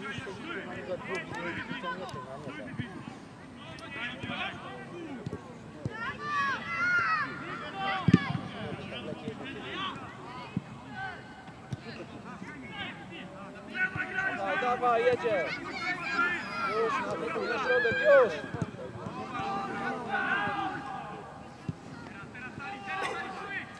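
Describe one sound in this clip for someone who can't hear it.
Boys shout and call to each other across an open field.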